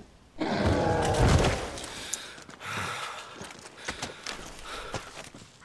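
Heavy blows and thuds land in a fight.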